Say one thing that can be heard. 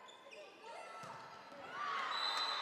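A crowd murmurs and cheers loudly.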